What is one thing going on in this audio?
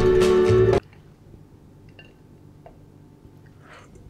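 Dishes clink in a rack.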